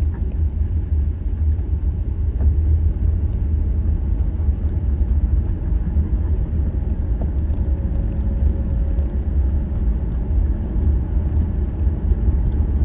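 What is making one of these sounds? Road noise rumbles inside a car driving at highway speed.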